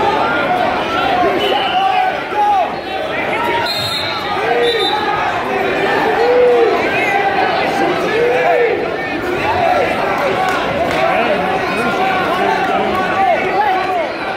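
A crowd of spectators chatters and shouts throughout a large echoing gym.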